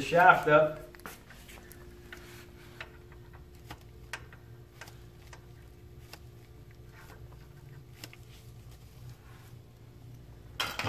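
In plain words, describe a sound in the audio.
Metal parts click and tap as a tool is worked on a brake hub.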